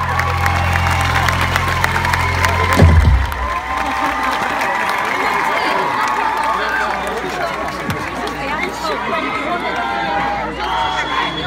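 A live band plays loudly through big speakers outdoors.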